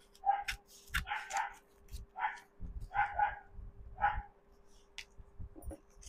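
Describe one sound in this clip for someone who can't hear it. Scissors snip through a paper wrapping.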